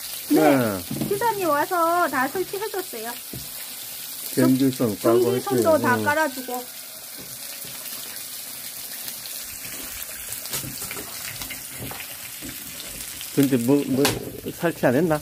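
A metal ladle scrapes and stirs food in a pan.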